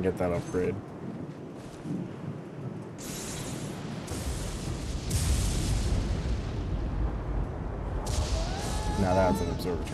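A young man speaks casually into a close microphone.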